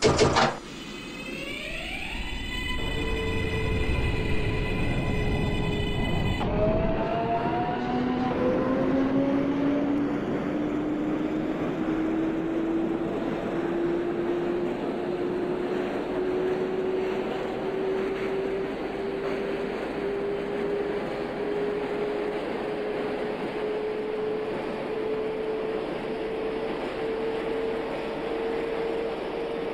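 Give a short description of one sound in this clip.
Train wheels rumble steadily on the rails.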